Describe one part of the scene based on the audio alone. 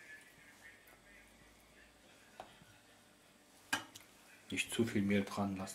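A fork whisks egg in a bowl.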